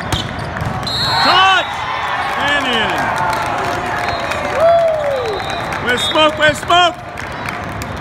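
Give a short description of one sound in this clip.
Young men shout and cheer loudly.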